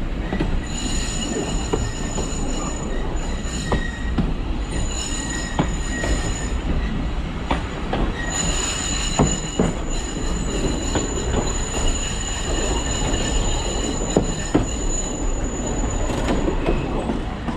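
Train wheels squeal on a curve.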